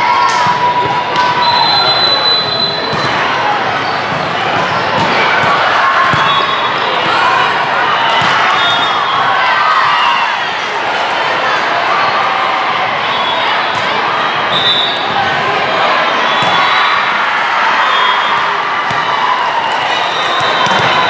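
Young women shout and call out to each other.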